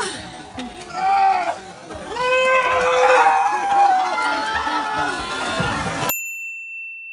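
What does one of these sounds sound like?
Men shout and cheer excitedly outdoors.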